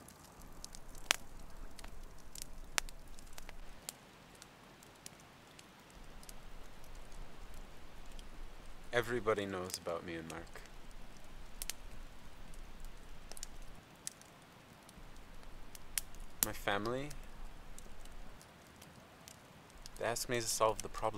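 A campfire crackles and pops nearby.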